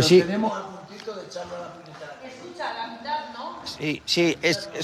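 An elderly man talks calmly nearby.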